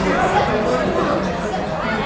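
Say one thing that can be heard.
A man talks to a group of young players outdoors.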